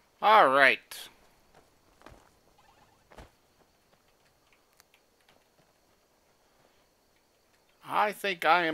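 Footsteps crunch softly over grass and earth.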